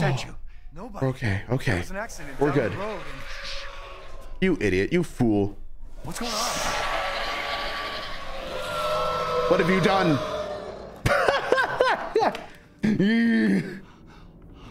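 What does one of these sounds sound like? A young man talks and exclaims into a nearby microphone.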